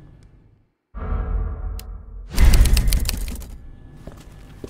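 A typewriter clacks loudly.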